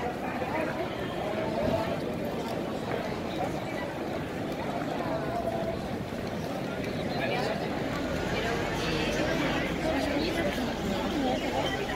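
A crowd of people chatters and walks by outdoors on a busy street.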